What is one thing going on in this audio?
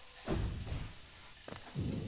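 A sword slashes and hits with a sharp crack.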